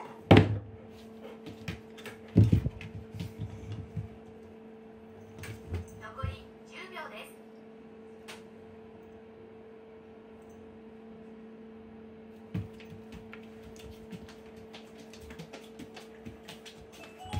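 A cat paws and knocks at a cardboard box.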